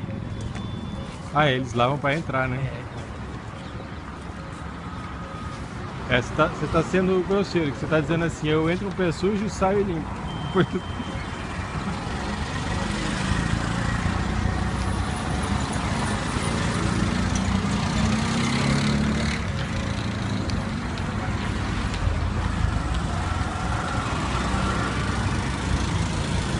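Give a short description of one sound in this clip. Auto-rickshaw engines putter and rumble as traffic passes on a street.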